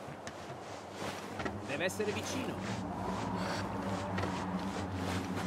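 Hands and feet clank on the rungs of a ladder while climbing.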